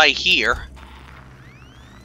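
A handheld motion tracker beeps softly.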